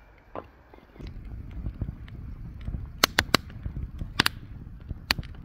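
A wood fire crackles and pops with a low roaring rush.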